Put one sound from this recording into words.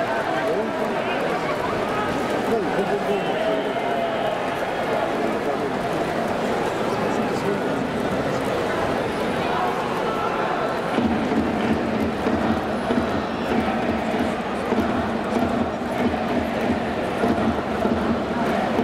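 A large stadium crowd cheers and chants loudly in a big echoing hall.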